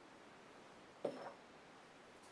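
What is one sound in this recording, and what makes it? A glass knocks down onto a wooden surface.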